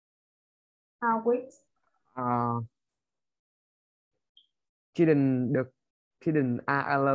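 A woman speaks calmly and clearly into a microphone, in short phrases with pauses.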